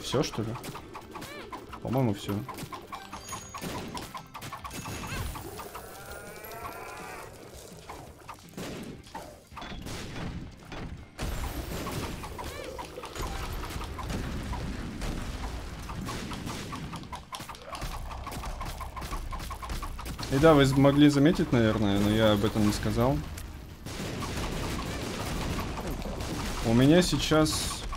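Game sound effects of shots and explosions play throughout.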